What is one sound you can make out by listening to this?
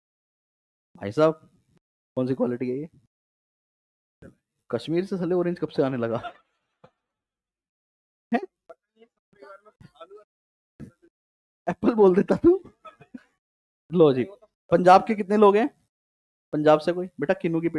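A man speaks with animation through a headset microphone.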